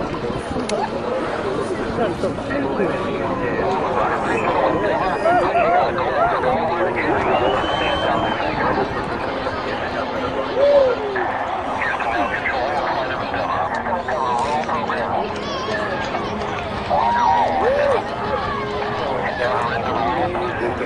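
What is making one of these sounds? A large outdoor crowd of men and women chatters and calls out excitedly.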